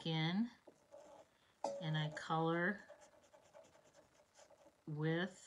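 A marker pen scratches softly across paper.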